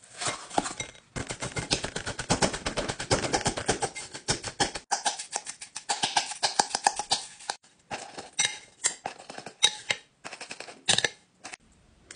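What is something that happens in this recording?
A spoon scrapes and clinks against a glass bowl.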